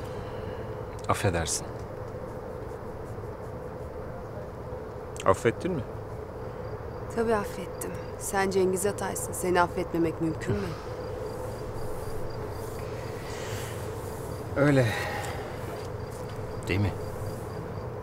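A man speaks softly and calmly nearby.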